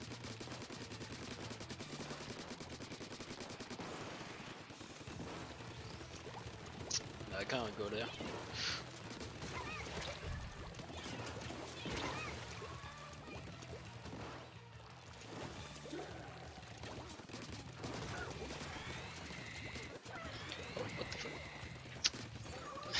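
Game ink guns splat and fire in rapid bursts.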